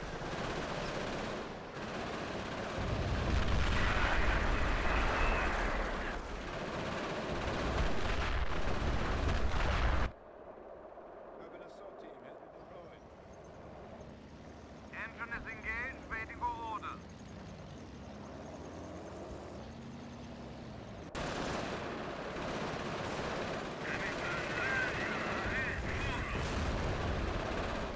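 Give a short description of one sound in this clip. Explosions boom and rumble in a noisy battle.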